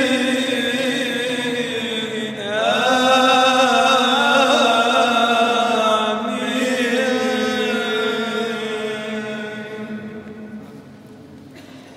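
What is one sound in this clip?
A congregation of men and women sings a slow chant together in a large echoing hall, fading near the end.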